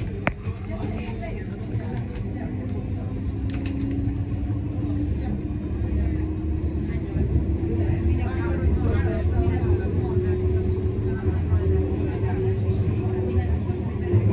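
A tram's motor whines, rising in pitch as it speeds up.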